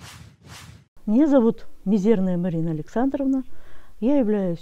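A middle-aged woman speaks calmly and clearly into a close microphone.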